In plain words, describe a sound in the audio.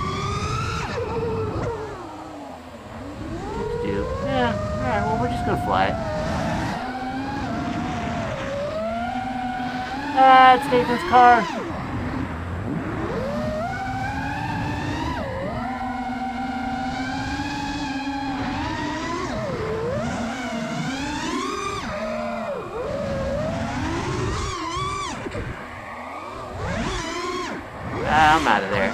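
Small drone motors whine loudly, rising and falling in pitch as the drone speeds up and slows down.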